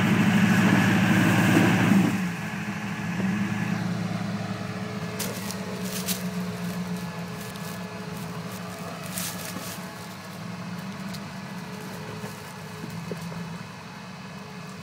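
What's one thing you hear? Tyres crunch over rocks and mud.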